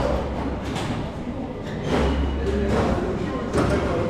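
A metal turnstile gate clunks open.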